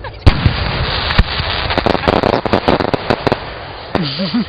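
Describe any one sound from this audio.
Fireworks crackle in rapid bursts.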